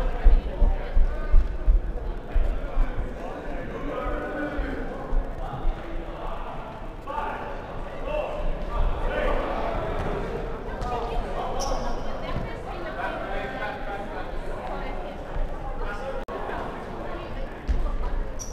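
Sneakers squeak and thud on a hardwood floor.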